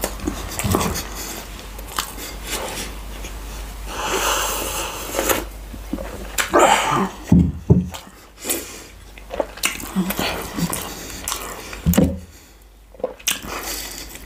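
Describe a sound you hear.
A man chews food close to a microphone.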